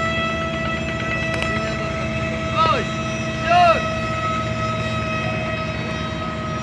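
A speedboat engine drones steadily as the boat races across the water.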